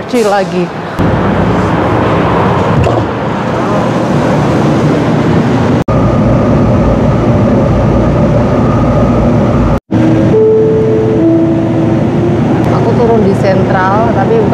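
A train rumbles and hums steadily while riding along.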